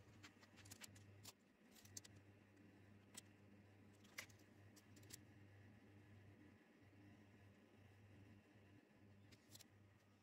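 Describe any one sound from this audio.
A metal tape measure clicks and taps against a metal plate.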